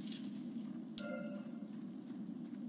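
A bright chime rings out once.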